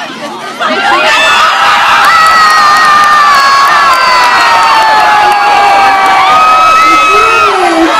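A crowd of teenagers screams and cheers loudly.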